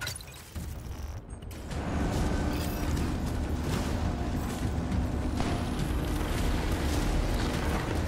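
Heavy footsteps thud on a hard floor.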